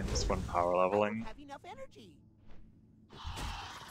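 Weapon blows strike a flying creature in a fight.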